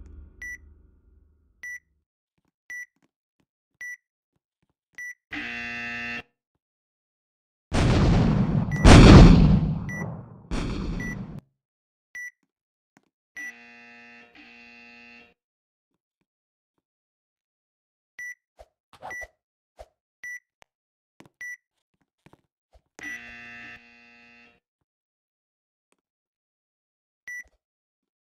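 Short electronic beeps tick off a countdown.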